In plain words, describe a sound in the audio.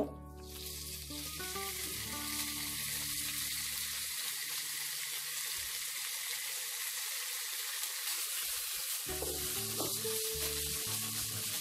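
Chicken sizzles steadily in a hot pan.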